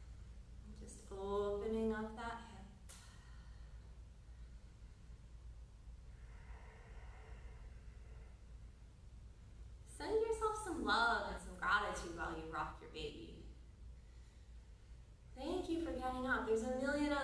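A woman speaks calmly and slowly, close by.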